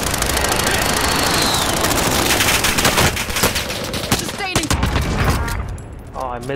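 Guns fire loud rapid bursts.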